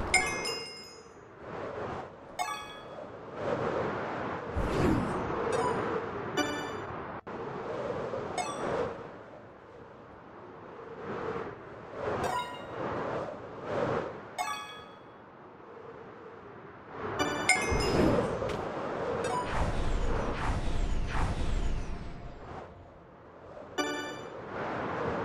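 A bright chime rings out several times.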